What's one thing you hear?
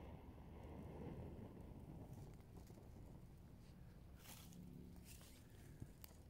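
Dry grass rustles as it is handled.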